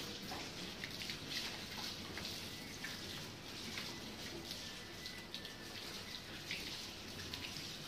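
Water from a hose splashes onto the ground and a dog's coat.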